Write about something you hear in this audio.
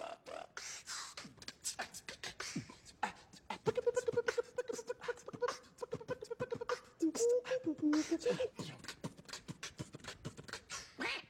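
A man beatboxes, with quick rhythmic clicks and a hummed tone.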